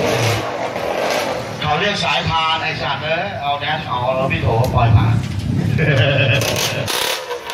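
Men chatter nearby outdoors.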